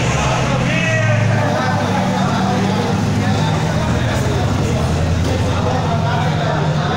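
A car engine rumbles loudly as the car drives slowly past, echoing in a large enclosed space.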